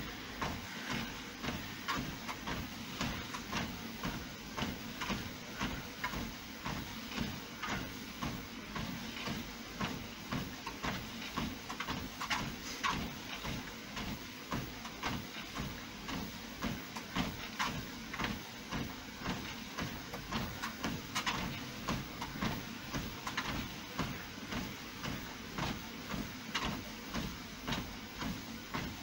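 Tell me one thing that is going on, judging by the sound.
Footsteps thud in a steady rhythm on a treadmill belt.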